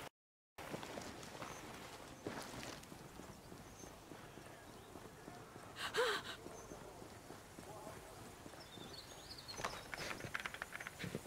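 Footsteps run quickly over hard ground.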